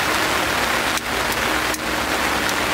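A lighter clicks and sparks.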